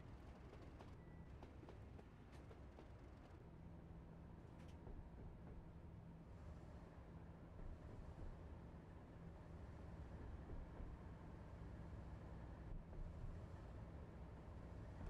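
A train engine rumbles steadily as the train rolls along.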